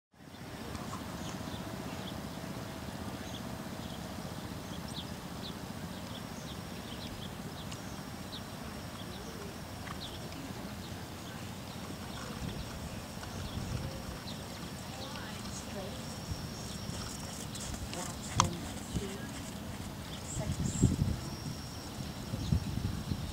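A horse's hooves thud softly on sand as it trots.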